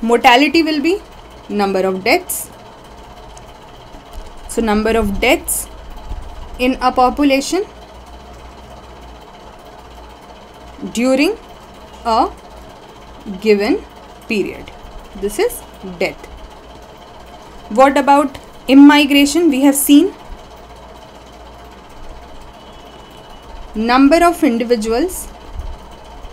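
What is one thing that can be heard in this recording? A young woman speaks calmly into a close microphone, pausing between phrases.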